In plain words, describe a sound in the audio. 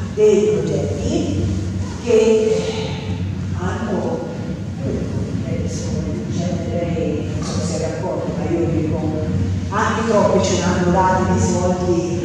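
A middle-aged woman speaks steadily into a microphone, heard through loudspeakers.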